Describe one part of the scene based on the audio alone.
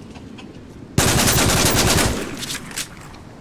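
Automatic guns fire in rapid bursts.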